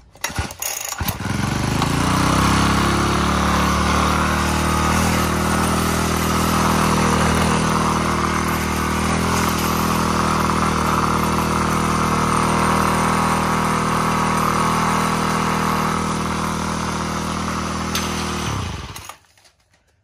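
A small two-stroke engine starts and idles steadily, loud and close, then stops.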